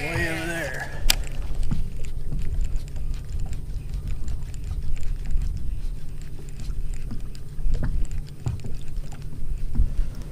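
A baitcasting reel is cranked, its gears whirring and clicking.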